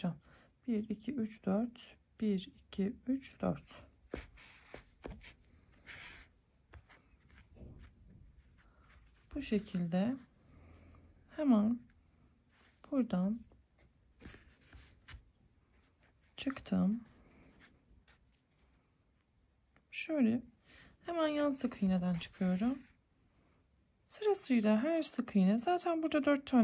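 Yarn rustles softly as it is drawn through crocheted stitches.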